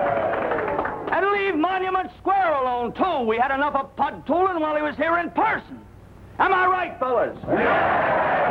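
A young man speaks loudly and firmly, close by.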